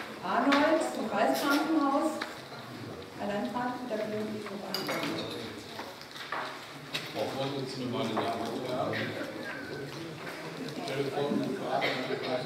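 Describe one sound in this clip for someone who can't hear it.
A woman speaks into a microphone at a steady pace.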